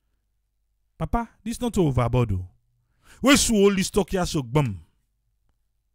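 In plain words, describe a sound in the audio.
An elderly man speaks into a microphone.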